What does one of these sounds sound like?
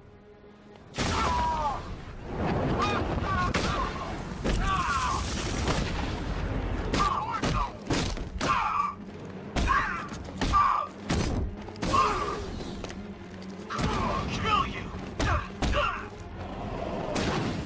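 Heavy punches and kicks land with hard thuds in a rapid brawl.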